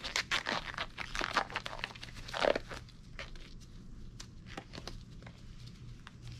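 Rubber gloves rustle and snap as they are pulled on.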